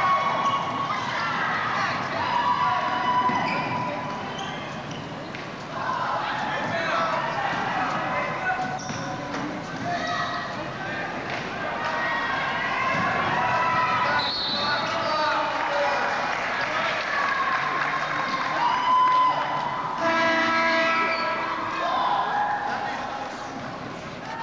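Players and spectators shout and call out in a large echoing gym.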